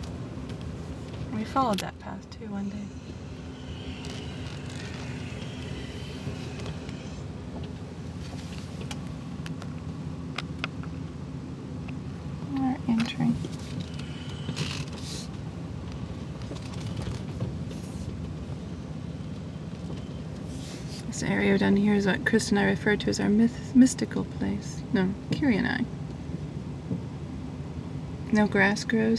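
A car engine hums low and steady while driving slowly.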